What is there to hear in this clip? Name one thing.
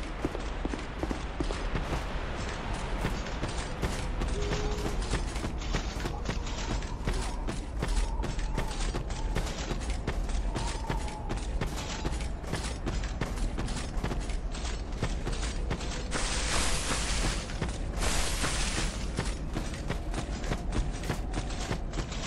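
Armoured footsteps run quickly over rough ground.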